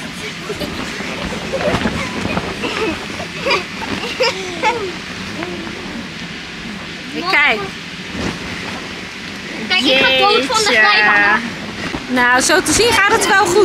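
Boys talk and laugh close by.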